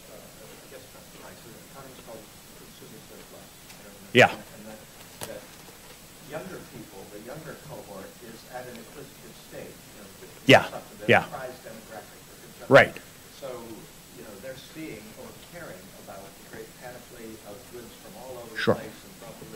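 A man speaks calmly into a microphone in a room, heard from across the room.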